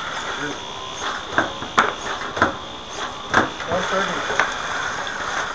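Plastic parts of a small robot clack and knock as it lifts and drops rings.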